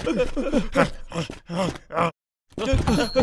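A cartoon wolf yelps in alarm.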